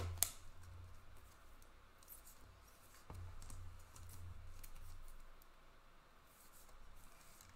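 Cards shuffle and slide against each other.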